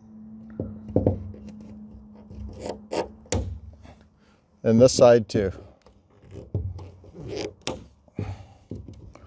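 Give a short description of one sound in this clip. Pliers click and snap against a board.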